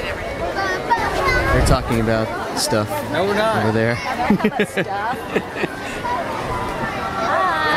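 A crowd murmurs in the background outdoors.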